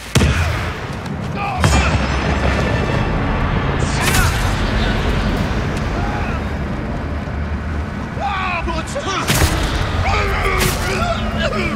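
Swords clash and slash with sharp metallic strikes.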